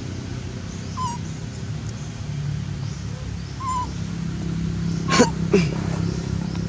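A young monkey squeals shrilly a few times.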